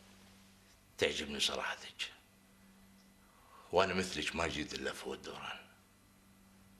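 A middle-aged man speaks calmly and kindly.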